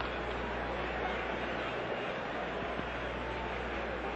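A large crowd cheers and murmurs in the distance.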